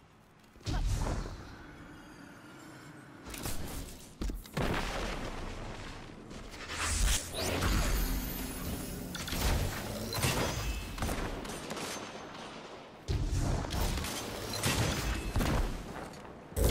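Heavy gunfire cracks in bursts.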